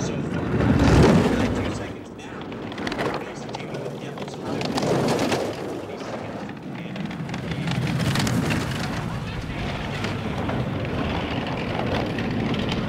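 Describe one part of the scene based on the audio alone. A bobsled rumbles and scrapes fast along an icy track.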